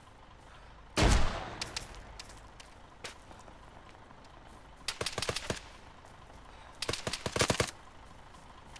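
A rifle fires several shots close by.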